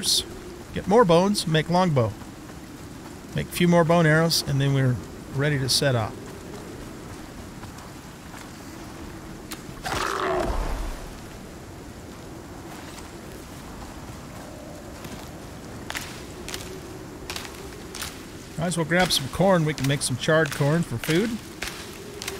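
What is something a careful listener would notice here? An adult man talks calmly into a close microphone.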